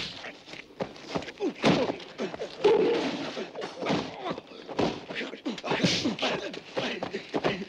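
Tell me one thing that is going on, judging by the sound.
Bodies thud and clothes rustle in a struggle.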